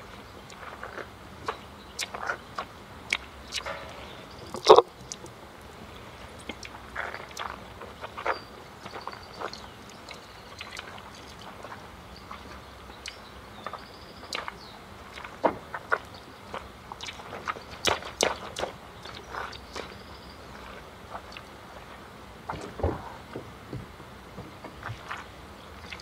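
Sneakers splash and slap on a wet pavement in quick steps.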